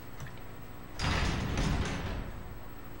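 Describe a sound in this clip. A heavy door creaks open slowly.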